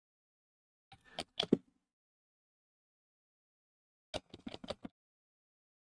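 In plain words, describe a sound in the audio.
Small plastic parts click softly as they are handled.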